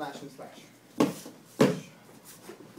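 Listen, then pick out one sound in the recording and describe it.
Bare feet thump and slap on a padded mat.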